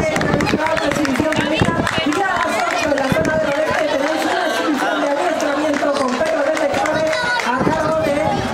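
A crowd of children and adults chatters nearby.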